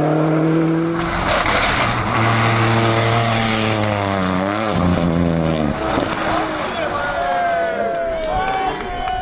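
A rally car engine revs hard and changes gear as the car speeds past.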